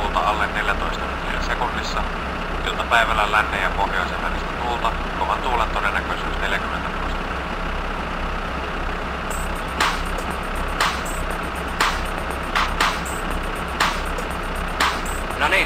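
A tractor engine idles with a steady, low chugging throb.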